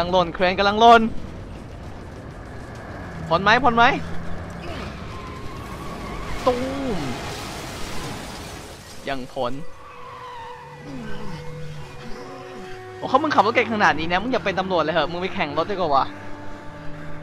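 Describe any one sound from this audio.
A young man talks and laughs excitedly into a close microphone.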